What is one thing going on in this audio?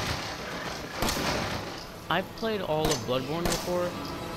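A pistol fires several loud shots in an echoing corridor.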